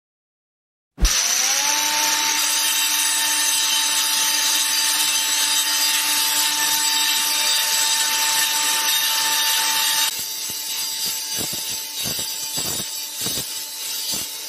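An angle grinder motor spins up and whines steadily.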